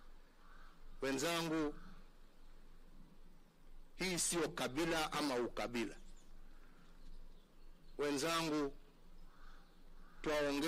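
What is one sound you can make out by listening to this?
A man speaks slowly and firmly through a microphone, with long pauses.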